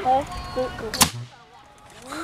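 A compressed-air rocket launches with a sudden sharp pop.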